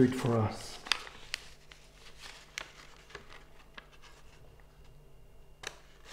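Paper rustles as a man handles a sheet.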